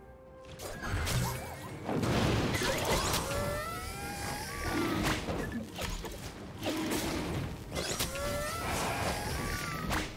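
Magic blasts whoosh and crack in a fast video game battle.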